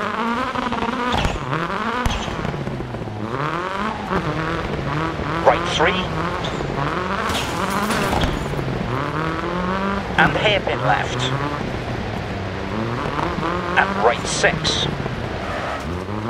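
A rally car engine revs hard and shifts up and down through the gears.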